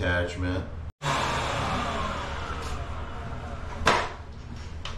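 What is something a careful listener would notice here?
A power tool hisses steadily at close range, then stops.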